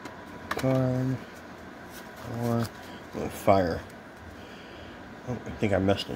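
Playing cards rustle and slide against each other.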